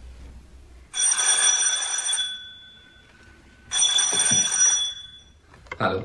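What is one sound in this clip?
A telephone rings in short repeated bursts.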